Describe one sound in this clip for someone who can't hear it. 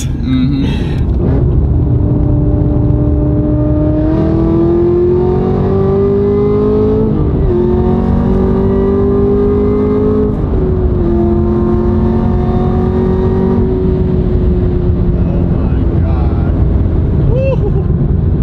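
A car engine roars and rises in pitch as it accelerates through the gears.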